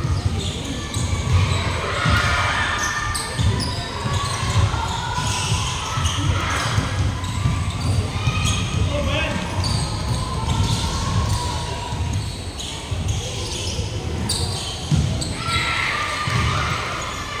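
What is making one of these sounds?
Many young people chatter and shout in a large echoing hall.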